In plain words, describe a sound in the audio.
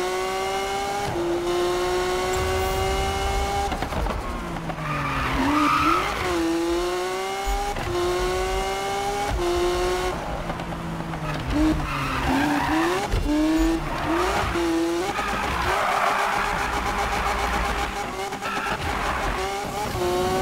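A race car engine roars and revs up and down through the gears.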